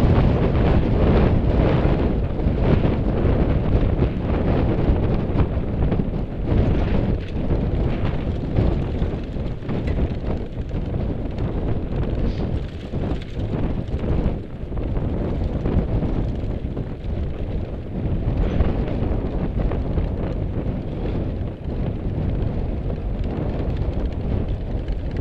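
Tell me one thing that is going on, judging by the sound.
Bicycle tyres crunch and rattle over a bumpy dirt track.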